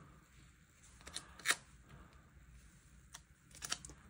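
A paper sticker crinkles and rustles as it is handled and pressed down.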